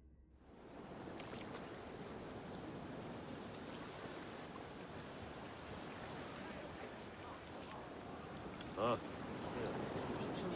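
Sea waves wash and roll steadily against a sailing ship.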